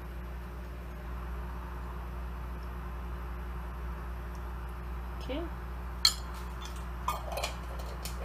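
A metal spoon clinks against a metal tin.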